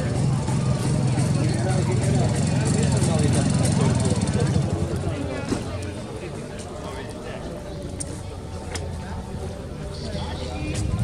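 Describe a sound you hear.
A two-stroke motorcycle engine runs close by.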